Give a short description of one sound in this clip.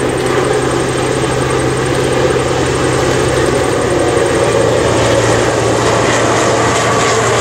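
A diesel locomotive engine rumbles steadily as a passenger train approaches.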